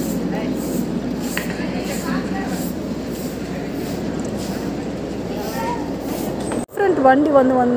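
A woman shouts back in the distance.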